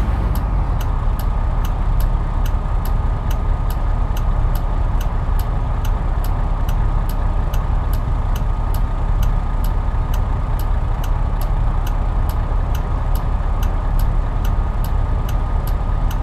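A turn signal ticks quickly and evenly.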